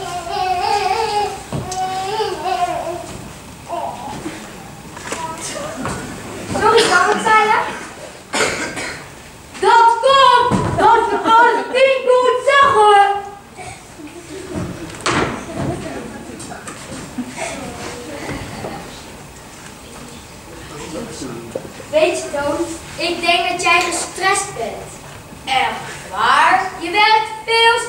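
A child speaks loudly on stage in an echoing hall.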